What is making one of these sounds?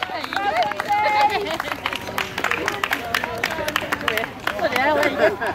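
Hands clap in scattered applause.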